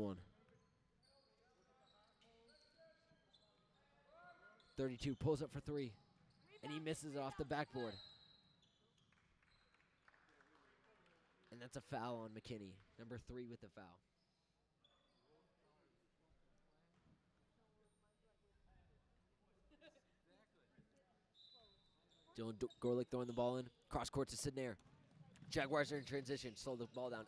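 Sneakers squeak on a hardwood floor.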